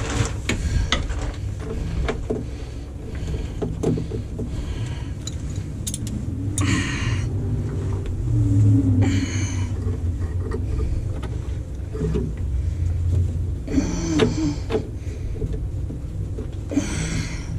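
Metal fittings clink and knock.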